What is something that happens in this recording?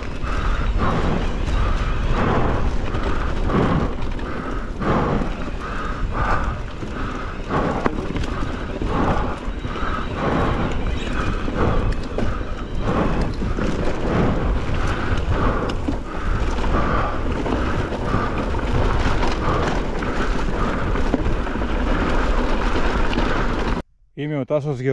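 Wind rumbles loudly across the microphone.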